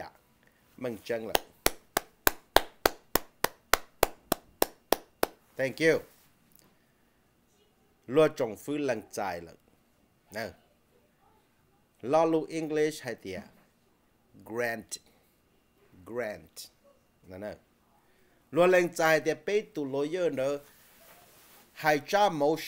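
A middle-aged man speaks with animation close to a microphone.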